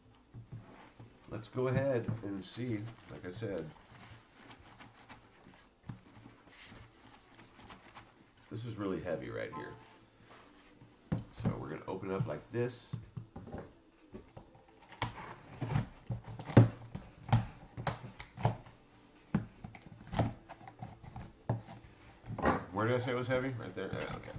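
A cardboard box is handled and shaken.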